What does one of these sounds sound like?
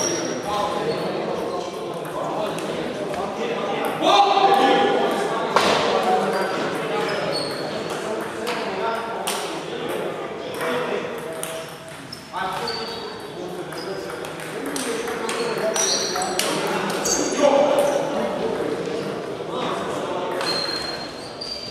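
Men talk and call out to each other across the hall.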